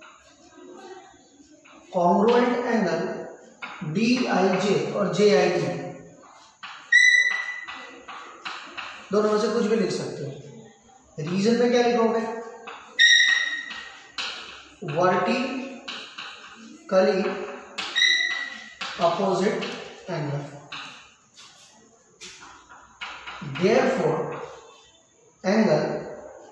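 Chalk scratches and squeaks on a board.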